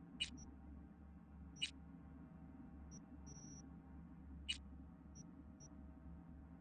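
Short electronic menu clicks and beeps sound now and then.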